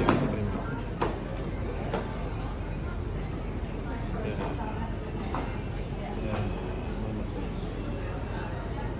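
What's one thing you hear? Footsteps tap on pavement outdoors.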